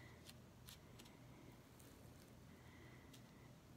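A stick scrapes and taps lightly against a plate.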